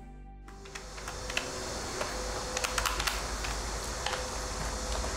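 A packet taps and clicks on a desk.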